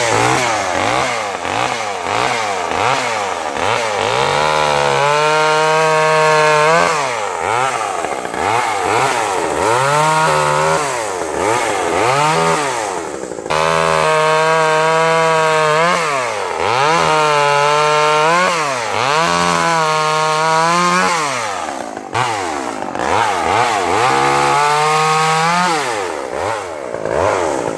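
A chainsaw engine idles and revs up and down loudly, close by.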